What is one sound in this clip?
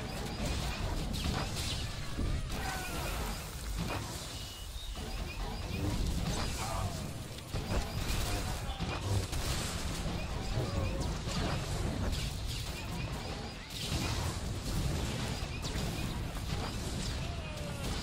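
Lightsabers hum and clash in a video game battle.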